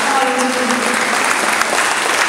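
A large choir holds a final sung note that fades out in an echoing hall.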